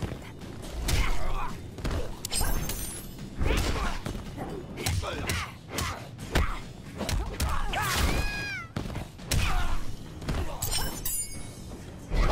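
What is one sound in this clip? Punches and kicks land with heavy thumps and smacks.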